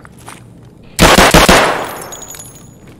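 A pistol fires several shots in an echoing space.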